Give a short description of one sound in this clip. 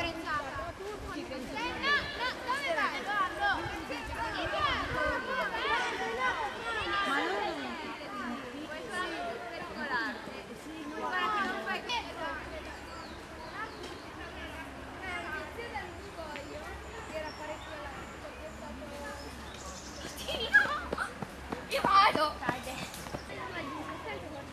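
A group of children and adults chatter and call out outdoors, a short way off.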